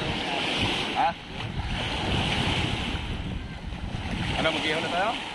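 Small waves lap against the shore.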